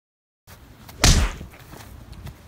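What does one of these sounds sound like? A body thuds onto the ground with a loud impact.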